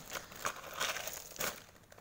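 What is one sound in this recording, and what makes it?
Water splashes as a hand sweeps through it.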